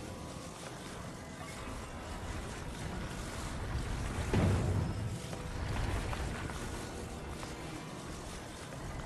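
A heavy stone block rumbles low as it slides along.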